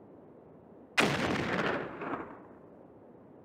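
A small bomb bursts with a puff.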